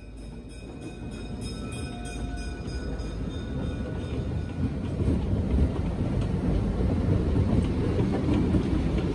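A passenger train rumbles past close by, growing louder.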